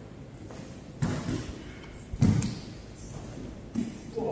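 Bodies thud heavily onto a padded mat.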